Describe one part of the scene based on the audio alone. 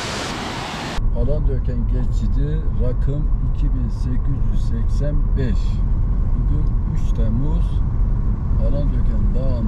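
A car hums steadily along a road.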